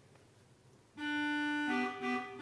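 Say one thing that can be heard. A pipe organ sounds a loud, sustained chord in an echoing hall.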